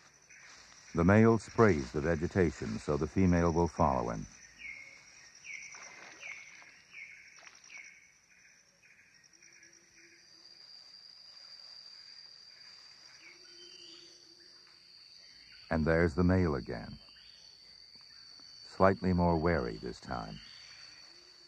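A rhinoceros calls out in loud, wavering bleats from the undergrowth.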